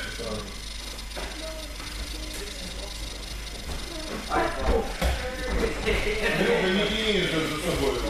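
Bare feet shuffle and thump on a mat.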